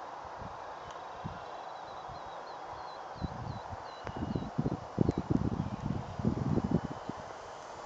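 A small model plane engine buzzes far off in the sky.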